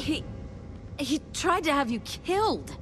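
A young woman speaks up close, with emotion.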